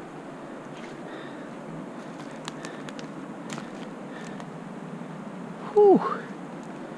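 Wind blows softly across an open mountainside.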